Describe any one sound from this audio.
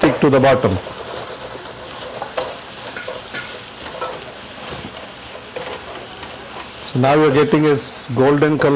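A wooden spoon scrapes and stirs food in a metal pot.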